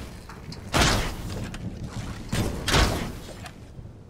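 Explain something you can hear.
A bow twangs as arrows are shot.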